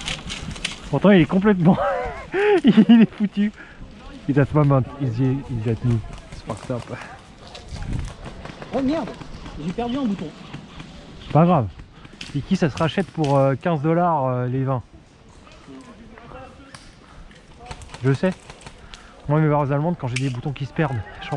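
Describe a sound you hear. A man talks calmly outdoors nearby.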